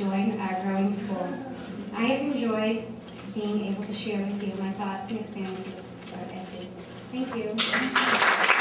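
A young woman speaks calmly into a microphone.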